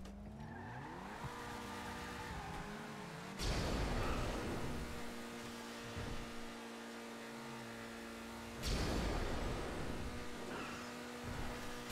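A car engine revs and roars as the car speeds away.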